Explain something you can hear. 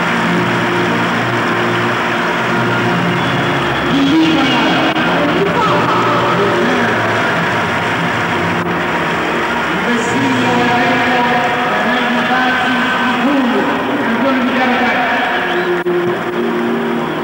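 A large stadium crowd cheers and murmurs steadily in a wide open space.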